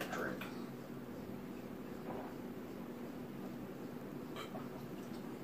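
A man gulps down a drink in loud swallows.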